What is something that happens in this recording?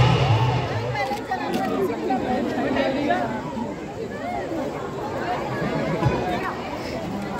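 A large crowd of people chatters and calls out.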